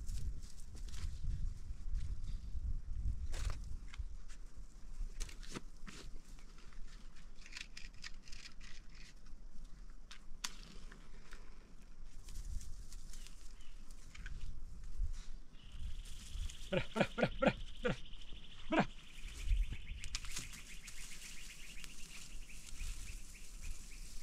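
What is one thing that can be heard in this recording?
Dry grass rustles as a man digs at the ground with his hands.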